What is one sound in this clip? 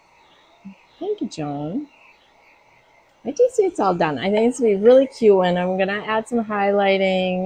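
A middle-aged woman talks with animation into a clip-on microphone, close by.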